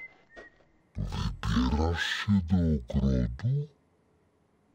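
A character babbles playfully in a squeaky, cartoonish voice nearby.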